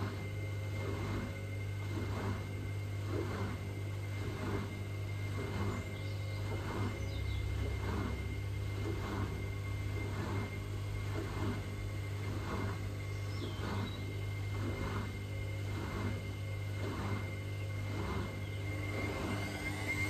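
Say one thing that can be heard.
Laundry thumps and sloshes rhythmically inside a washing machine drum.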